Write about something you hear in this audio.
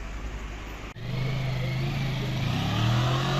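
A motorcycle engine rumbles close by and revs up.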